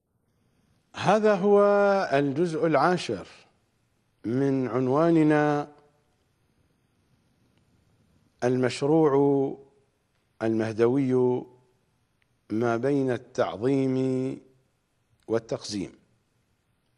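A middle-aged man speaks slowly and solemnly into a close microphone, with long pauses.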